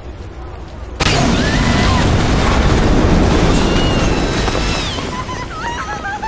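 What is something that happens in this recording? An explosion booms and rumbles loudly.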